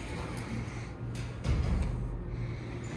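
A finger clicks an elevator call button.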